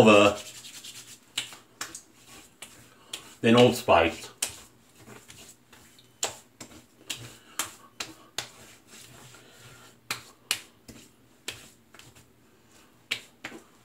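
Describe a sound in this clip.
A man slaps and pats his face and neck with his hands.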